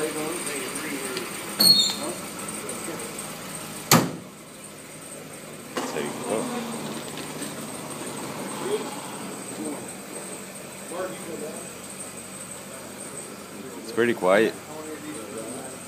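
Men talk casually nearby in an echoing room.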